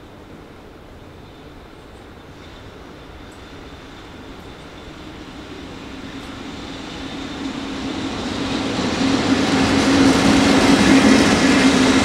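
An electric locomotive approaches with a rising hum and rumble, growing loud as it passes close by.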